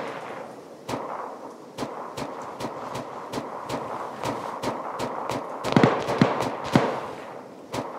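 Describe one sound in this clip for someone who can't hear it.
Rustling grass and gear shuffle as someone crawls along the ground.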